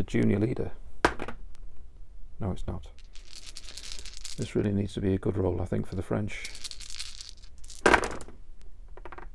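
Dice rattle and clatter into a tray.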